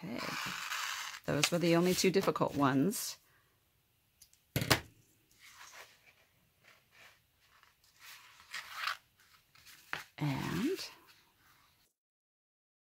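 A cord scrapes as it is pulled through holes.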